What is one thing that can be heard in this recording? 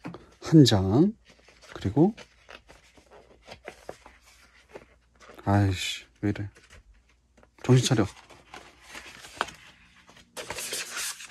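A large sheet of paper rustles and crinkles as it is handled.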